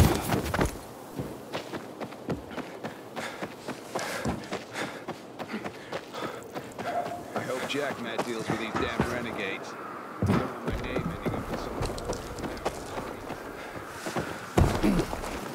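Quick footsteps run over grass and hard ground.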